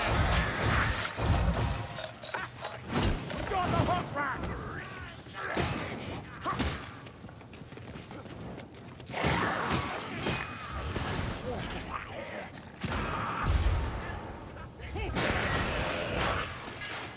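Heavy blows strike and thud against bodies.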